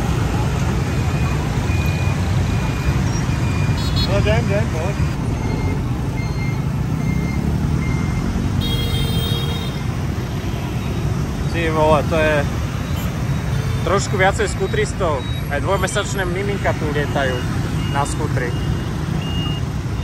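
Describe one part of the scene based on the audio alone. Motorbike horns beep in short bursts.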